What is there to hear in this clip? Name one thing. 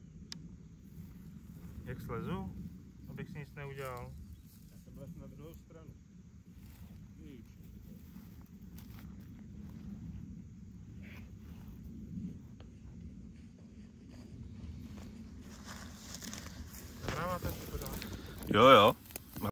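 Wind blows softly outdoors.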